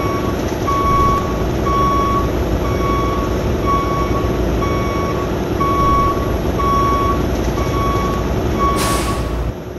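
A truck engine rumbles steadily at low idle.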